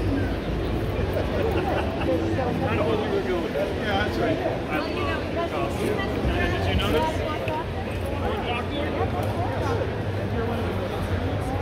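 Men and women talk nearby with animation.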